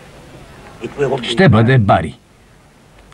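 An elderly man speaks in a low voice.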